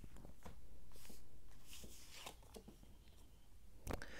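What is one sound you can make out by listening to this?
A playing card slides softly across a cloth.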